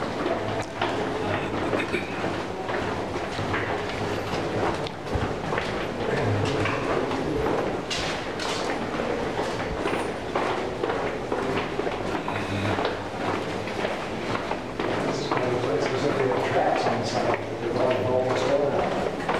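Several people talk in the distance, their voices echoing.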